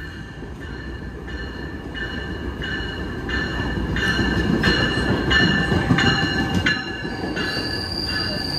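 A diesel commuter locomotive rolls into a station, its rumble growing.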